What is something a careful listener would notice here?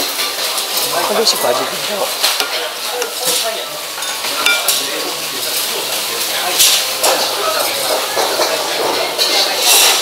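A spoon scrapes and clinks against a bowl.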